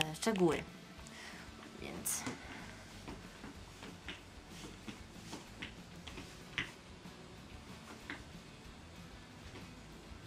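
Shoes tap lightly on a hard floor.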